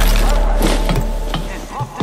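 Footsteps clank on a metal ladder.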